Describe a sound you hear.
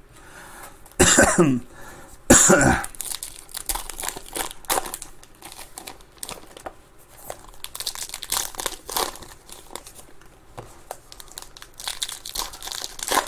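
Foil card wrappers crinkle and tear as packs are opened.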